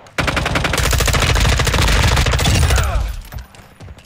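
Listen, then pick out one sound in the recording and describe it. A rifle fires in a rapid burst of loud shots.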